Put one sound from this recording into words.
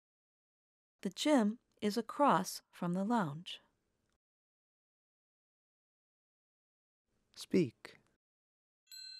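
A woman answers calmly and clearly into a microphone.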